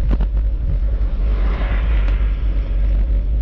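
A motor scooter passes by on a nearby road.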